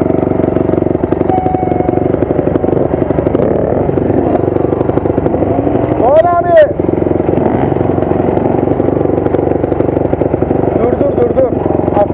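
A dirt bike engine runs close by with a steady rattling drone.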